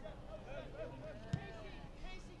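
A soccer ball is kicked with a thud.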